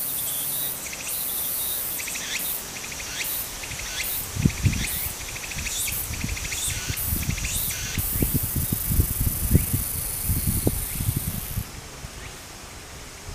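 Shallow water trickles gently over a rocky streambed.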